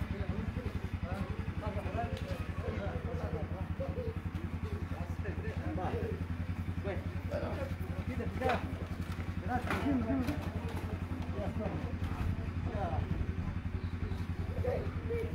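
A crowd of men and women murmur and talk nearby, outdoors.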